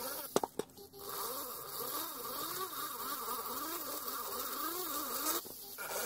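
A small rotary tool whines as it grinds metal, its pitch wavering.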